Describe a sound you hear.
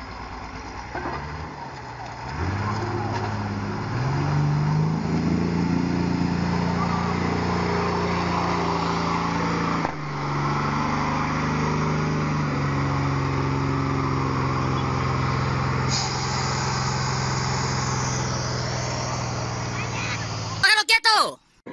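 A diesel dump truck engine labours under load through water.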